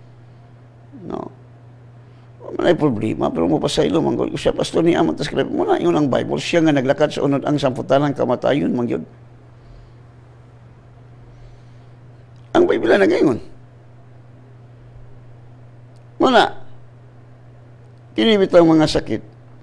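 An older man speaks calmly into a close microphone, with pauses.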